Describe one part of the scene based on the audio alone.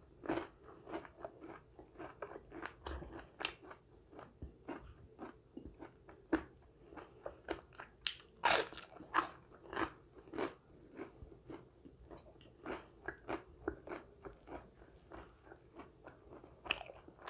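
Chopsticks click against a small dish.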